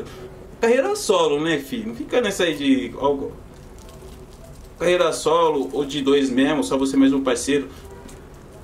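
A young man sings loudly and expressively up close.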